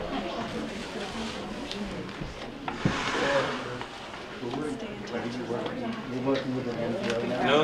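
A young woman talks nearby.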